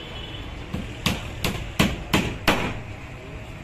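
A hammer knocks sharply on a wooden board several times.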